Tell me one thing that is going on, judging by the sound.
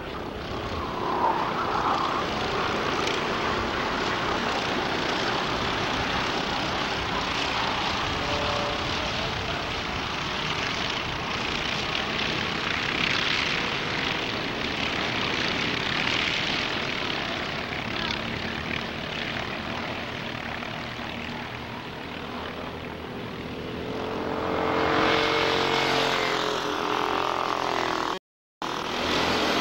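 Kart engines buzz and whine loudly as the karts race past.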